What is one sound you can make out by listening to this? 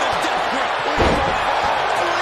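A heavy thud sounds as a body slams onto a wrestling mat.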